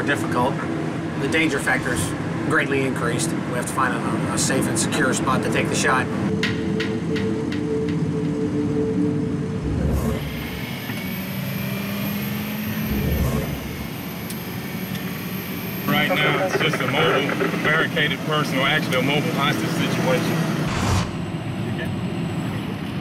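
A truck rumbles past on a highway.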